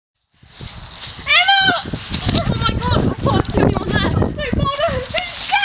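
A young girl talks and laughs close by.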